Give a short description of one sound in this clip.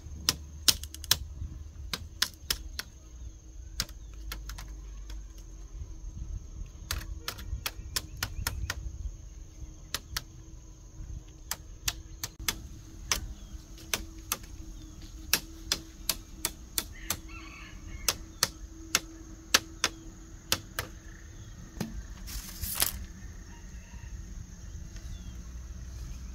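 Bamboo strips knock and tap sharply as they are woven into a fence.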